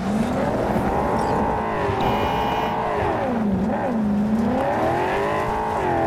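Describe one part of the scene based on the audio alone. Tyres skid and crunch on gravel.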